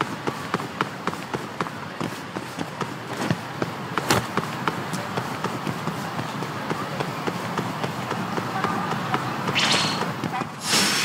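Quick footsteps run on pavement.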